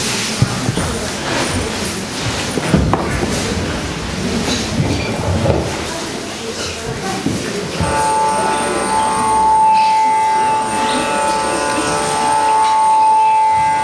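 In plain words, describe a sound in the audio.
A man strikes a wooden xylophone-like instrument in a reverberant hall.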